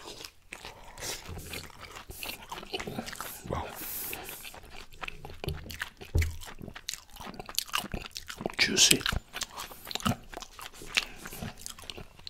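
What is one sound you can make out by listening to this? Meat tears and squelches in a man's hands close to a microphone.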